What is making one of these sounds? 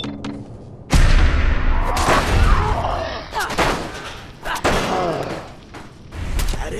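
Heavy melee blows thud against metal armour.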